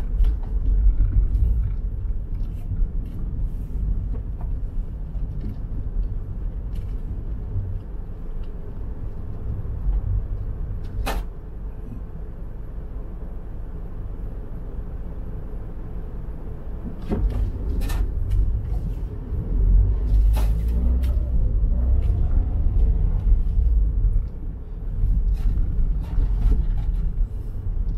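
A car engine rumbles low inside the car as it drives slowly.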